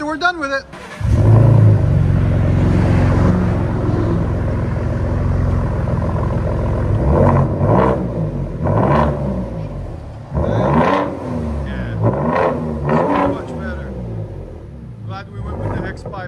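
A pickup truck engine rumbles deeply and revs loudly through an open exhaust.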